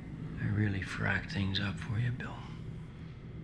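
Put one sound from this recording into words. An older man speaks softly and quietly nearby.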